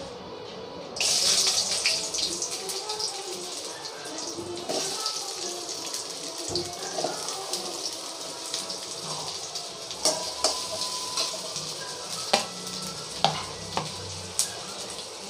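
Oil sizzles and crackles in a hot pan.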